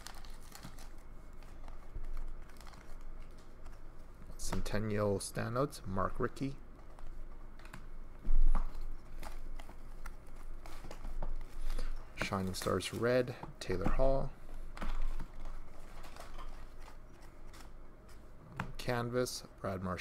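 Trading cards rustle and slide as they are shuffled.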